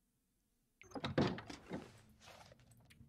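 A door opens with a creak.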